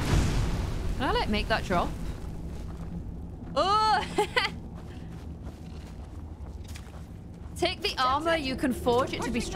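A young woman speaks excitedly into a microphone close by.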